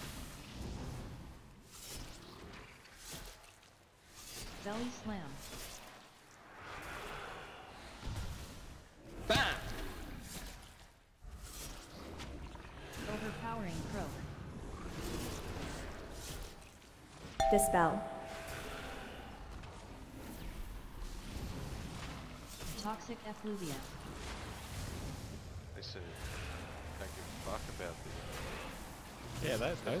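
Spell effects crackle and burst in a game battle.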